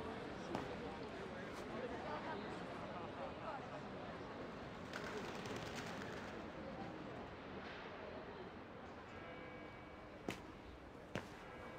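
A crowd of men and women murmurs and chatters at a distance.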